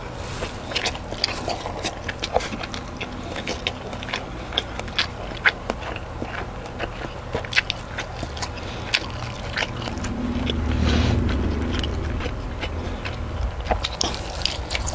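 A young man chews food wetly and smacks his lips close to a microphone.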